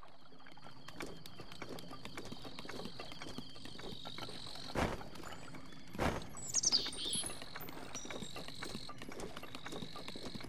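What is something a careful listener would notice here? Quick footsteps run across stone.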